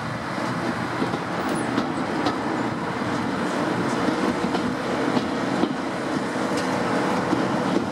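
A steam train rumbles and clatters along the track.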